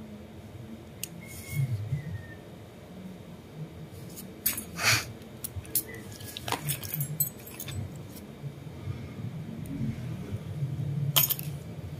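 Nail nippers snip at a toenail.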